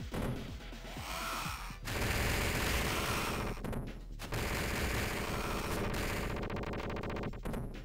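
Punches and kicks land with hard thuds.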